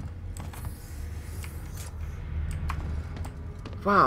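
A heavy metal door slides open.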